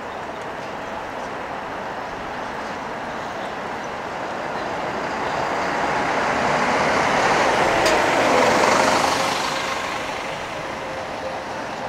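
A bus engine rumbles as a bus drives past close by and fades away.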